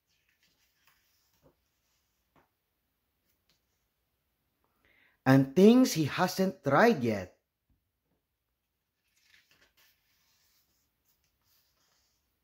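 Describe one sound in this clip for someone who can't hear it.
Paper pages rustle and flip as they are turned.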